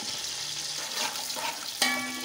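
A metal ladle scrapes and knocks against a pot.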